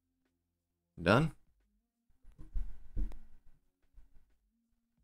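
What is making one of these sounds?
A man speaks close to a microphone in short bursts.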